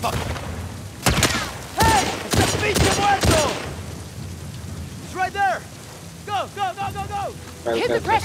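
A man shouts in alarm.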